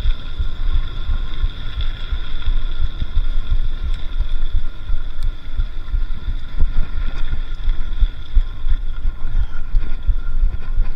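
Bicycle tyres rumble over a gravel path.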